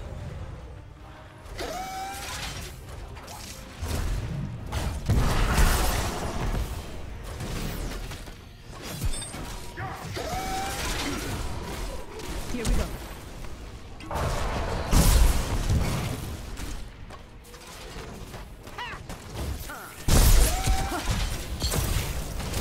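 Game spell effects blast and crackle in bursts of battle.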